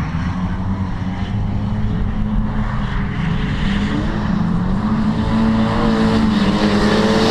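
A distant car engine revs and whines.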